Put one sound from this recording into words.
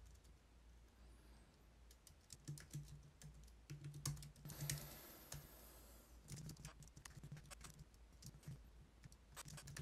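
Keys on a keyboard click rapidly in bursts.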